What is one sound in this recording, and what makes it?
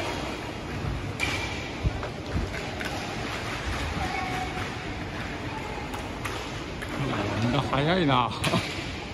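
Skate wheels roll and rumble across the floor.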